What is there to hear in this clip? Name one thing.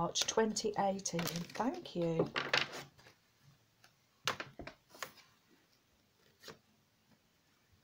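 A playing card slides and taps on a wooden table.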